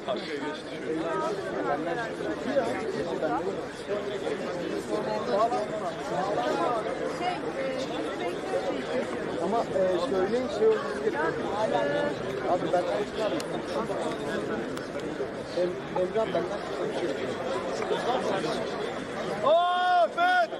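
A large crowd of men talks and shouts at once outdoors.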